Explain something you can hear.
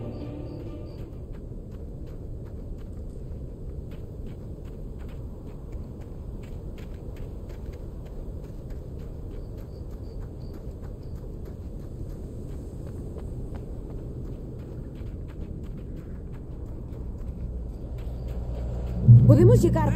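Footsteps crunch steadily on the ground.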